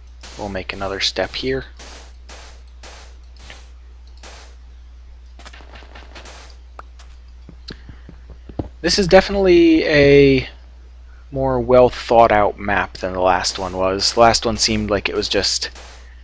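Blocks of sand thud softly as they are placed, one after another.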